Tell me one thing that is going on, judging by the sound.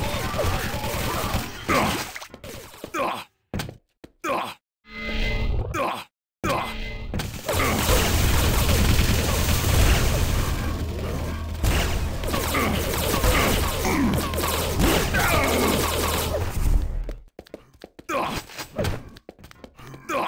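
Gunfire and weapon blasts from a video game ring out.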